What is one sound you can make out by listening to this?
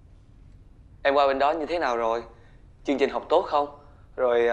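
A young man speaks up close, with feeling.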